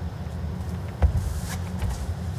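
A bowl thuds softly onto the carpet and rolls away.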